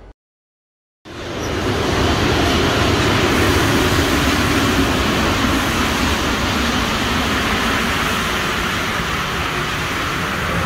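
A subway train rumbles loudly as it pulls into an echoing station.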